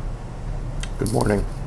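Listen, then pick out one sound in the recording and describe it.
A middle-aged man speaks through an online call.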